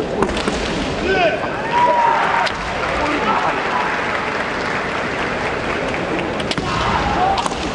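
Fencers shout loudly in a large echoing hall.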